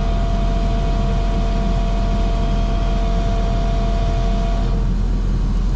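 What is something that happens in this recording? A fuel pump hums steadily as fuel flows through a nozzle.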